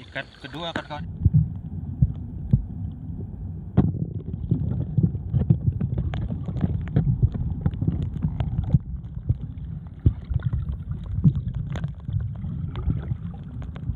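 Water churns and knocks with a muffled rumble, heard from underwater.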